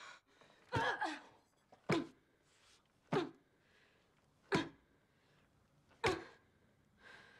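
Fist blows land on a person with heavy thuds.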